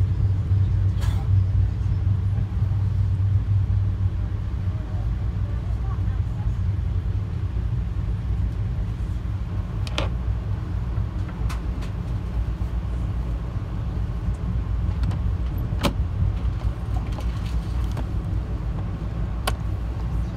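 A train's wheels click and clack over rail joints.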